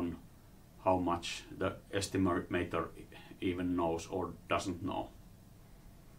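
An elderly man speaks calmly into a microphone, lecturing.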